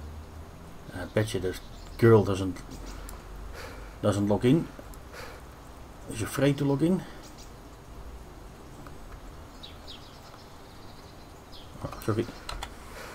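A man speaks casually in short bursts, close to a microphone.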